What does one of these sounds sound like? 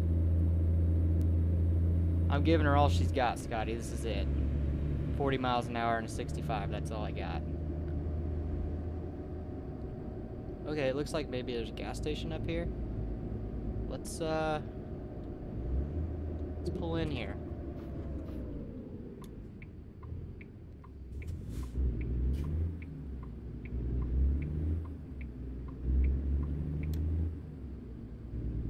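A truck engine drones steadily and then rises and falls.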